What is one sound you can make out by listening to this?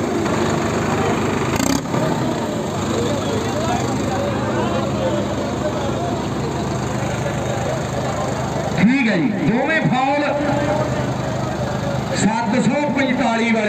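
Tractor engines rumble and roar steadily nearby.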